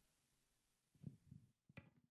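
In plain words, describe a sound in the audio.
A man taps a hand drum with soft, low thumps.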